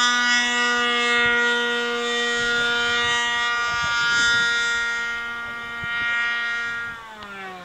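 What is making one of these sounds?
An aircraft engine drones steadily overhead, then drops in pitch as it passes.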